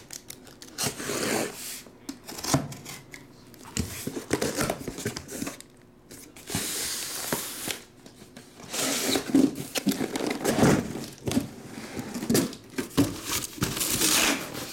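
Cardboard packs thump softly onto a table.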